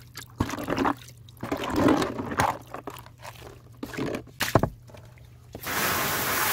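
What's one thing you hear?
A hand sloshes water in a plastic tub.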